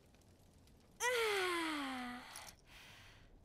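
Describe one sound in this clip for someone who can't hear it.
A young woman exclaims cheerfully with a falling voice.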